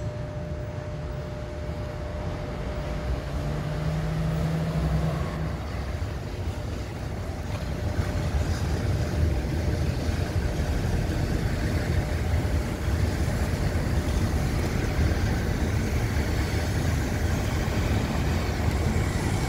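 A train's wheels clatter and squeal on the rails.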